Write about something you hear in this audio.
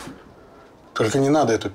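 A middle-aged man speaks in a low voice.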